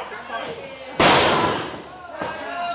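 A wrestler's body slams onto a wrestling ring mat with a heavy thud.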